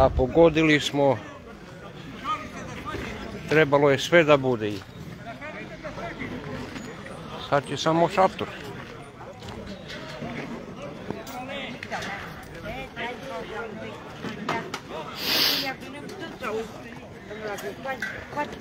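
Several men talk and chat nearby outdoors.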